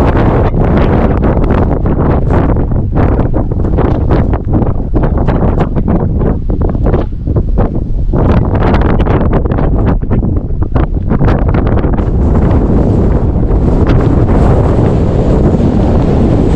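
Strong wind buffets and rumbles across open ground.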